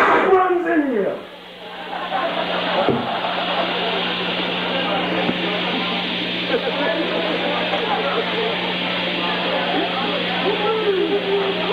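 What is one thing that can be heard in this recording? An electric guitar rings with harsh, noisy feedback.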